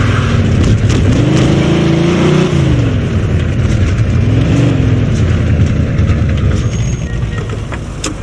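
A car engine revs and roars as it drives.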